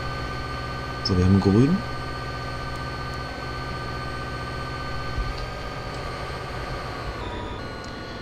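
A diesel locomotive engine hums steadily.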